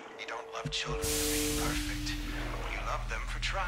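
Gas sprays with a loud, steady hiss.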